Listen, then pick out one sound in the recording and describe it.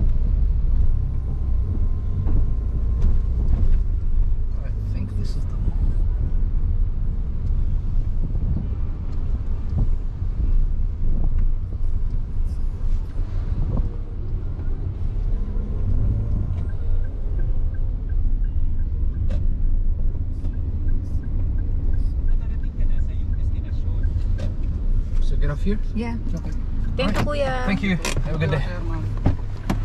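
A car engine hums steadily from inside the cabin as the car drives.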